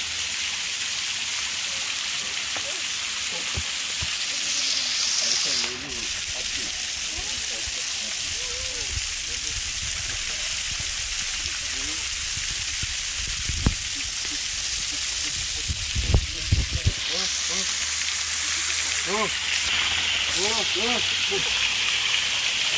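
Water sprays and splashes steadily onto an elephant.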